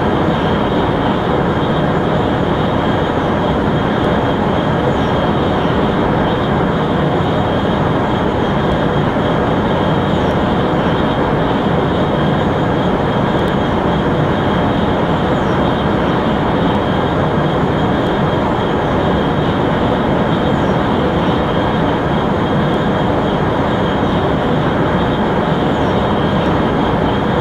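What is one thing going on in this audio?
A high-speed train rushes along the track with a steady, loud roar.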